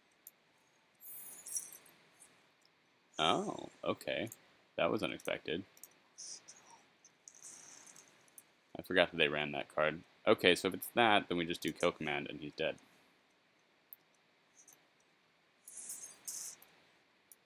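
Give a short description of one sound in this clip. Magical game sound effects chime and sparkle.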